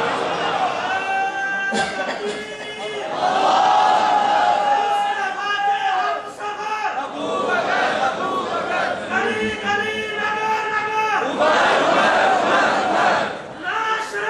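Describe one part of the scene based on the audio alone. A middle-aged man speaks loudly and passionately through a microphone, with the voice echoing off hard walls.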